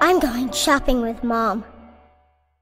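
A young girl calls out loudly nearby.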